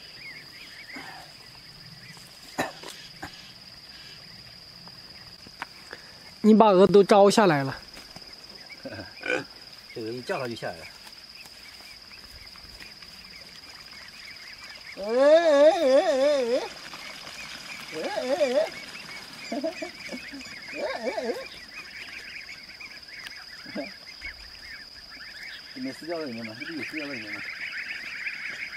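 A flock of ducks quacks nearby, outdoors.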